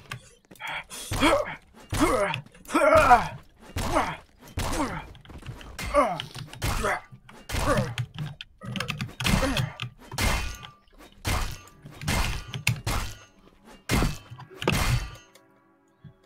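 A bat strikes a body with repeated heavy thuds.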